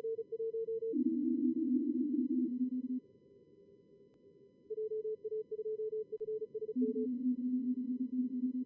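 Lower-pitched Morse code beeps answer in quick bursts.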